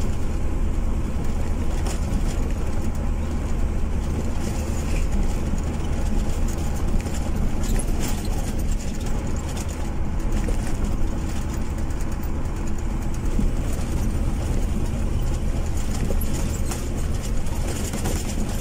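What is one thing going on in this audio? A vehicle's engine hums steadily from inside the cab.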